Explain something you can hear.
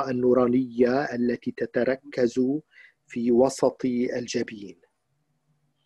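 An elderly man speaks calmly, close to the microphone.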